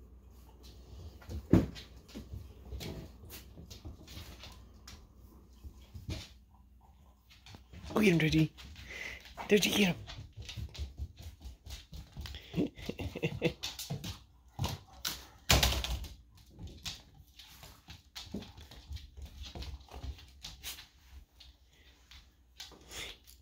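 Dogs' claws click and scuffle on a hard floor.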